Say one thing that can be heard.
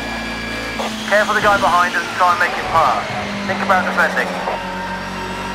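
Tyres squeal through a corner.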